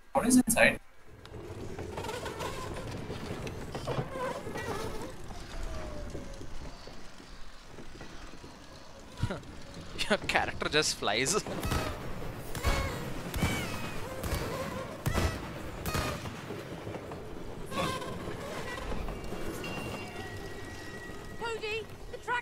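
A cart rattles along a wooden track.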